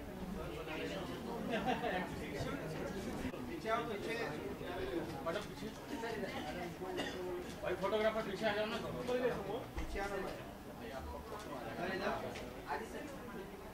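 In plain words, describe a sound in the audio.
A crowd chatters in an echoing room.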